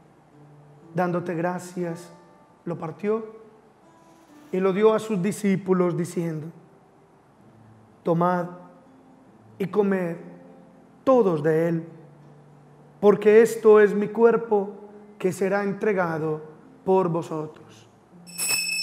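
A man chants slowly and calmly through a microphone.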